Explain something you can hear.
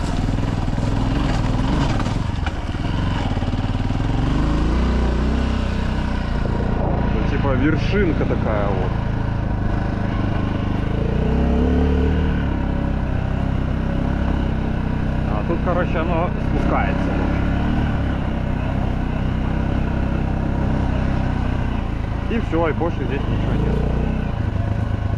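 A motorbike engine drones and rises and falls in pitch as it rides along.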